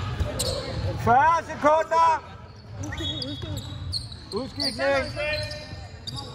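Basketball shoes squeak on a court in a large echoing hall.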